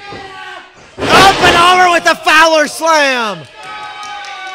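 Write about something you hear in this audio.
A man yells loudly in pain.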